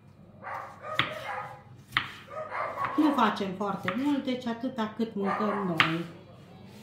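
A knife taps against a cutting board as tomatoes are sliced.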